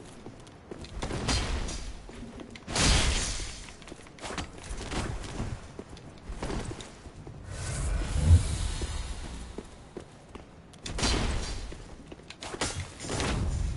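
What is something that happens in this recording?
Swords clash and strike in sharp metallic hits.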